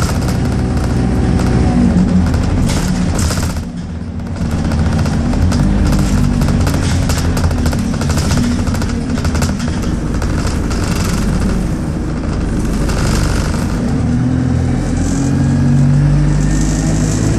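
A bus engine rumbles and whines steadily from inside the bus.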